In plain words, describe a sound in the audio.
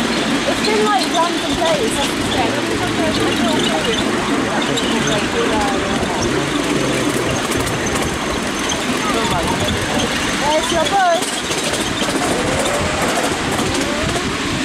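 Wind rushes past as the ride moves along outdoors.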